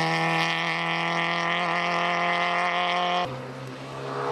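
A rally car's engine roars loudly as the car speeds along the road.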